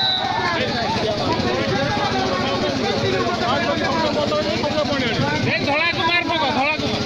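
A large crowd of men and women chatters and shouts loudly outdoors.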